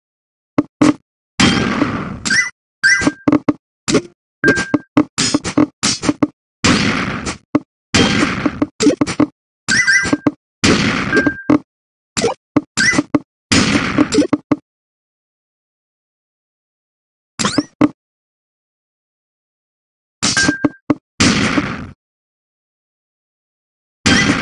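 Game sound effects click and chime as falling blocks lock into place.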